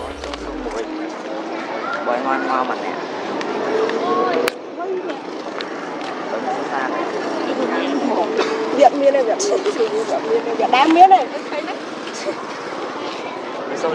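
Young women chat and laugh nearby outdoors.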